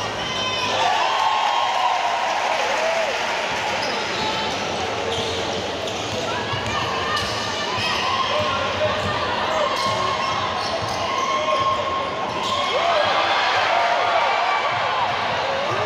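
A large crowd cheers and chants in an echoing indoor hall.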